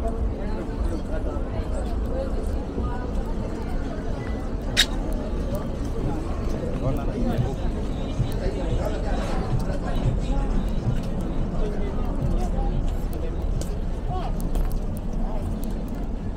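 Footsteps shuffle on paving stones.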